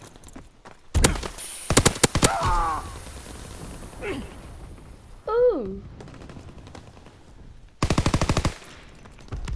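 A submachine gun fires short rapid bursts up close.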